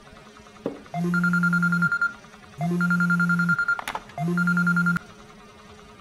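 A phone rings with repeated electronic tones.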